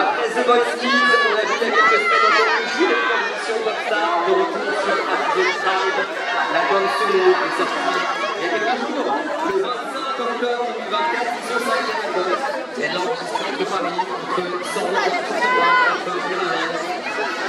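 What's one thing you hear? A crowd of young fans talks and calls out excitedly outdoors.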